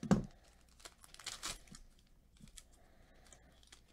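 A foil pack crinkles and rustles as hands tear it open.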